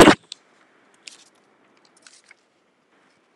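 A sheet of paper rustles in a hand.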